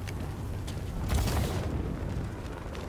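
A grappling line whooshes upward.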